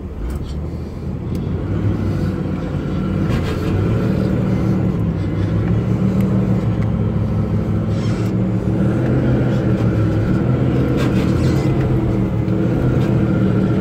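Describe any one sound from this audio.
A closer engine runs steadily and rumbles as it drives.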